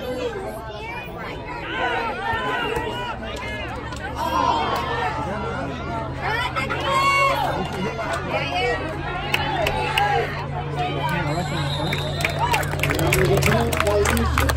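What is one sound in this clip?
Men shout from nearby on the sideline.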